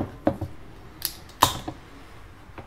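A can is cracked open with a sharp click and hiss.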